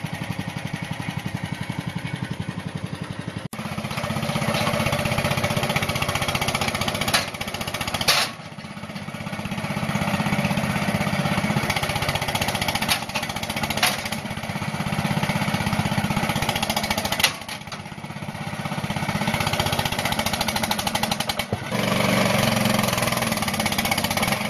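A small engine chugs steadily close by, revving up and down.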